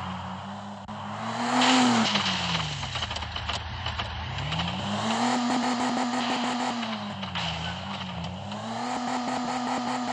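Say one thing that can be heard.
A car crashes and thuds as it rolls over.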